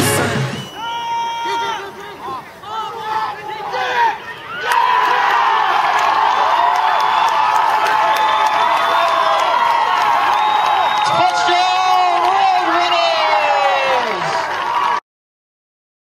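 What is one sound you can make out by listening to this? A crowd cheers and shouts loudly outdoors.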